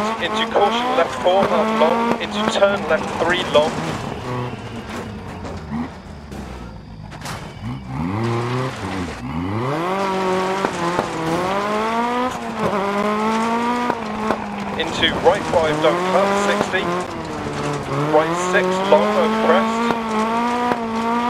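Gravel sprays and crunches under spinning tyres.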